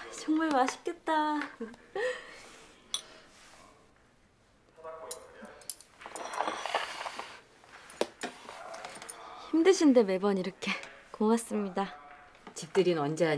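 A young woman speaks with delight, close by.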